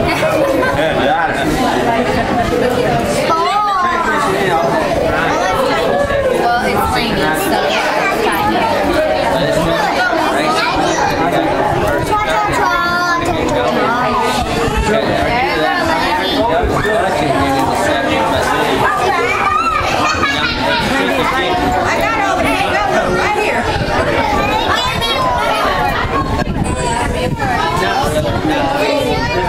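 Young children chatter excitedly close by.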